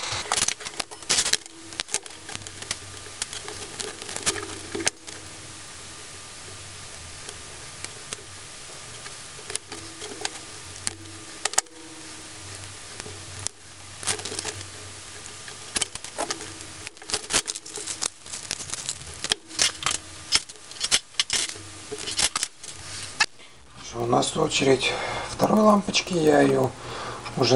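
Small plastic and metal parts click and tap as they are handled.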